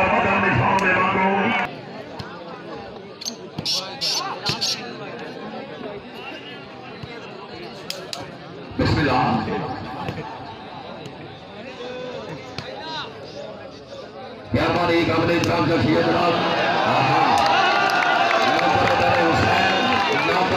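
A crowd cheers and chatters outdoors.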